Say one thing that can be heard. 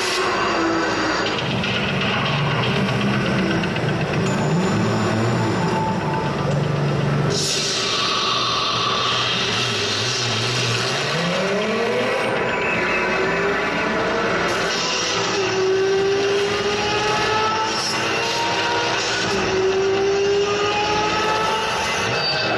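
Loud music plays over loudspeakers in a large echoing hall.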